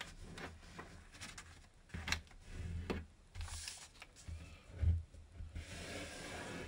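Paper rustles and crinkles as hands fold and press it.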